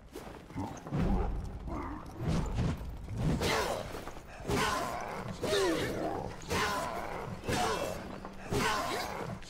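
Blades clash and thud in a fight.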